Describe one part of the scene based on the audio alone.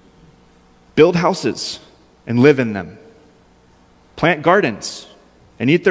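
A man speaks calmly through a microphone in a large echoing hall, pausing between phrases.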